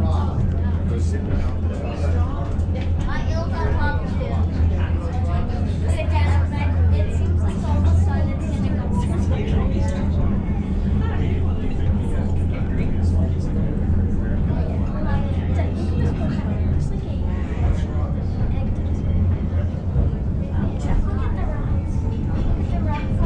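Many passengers chatter nearby.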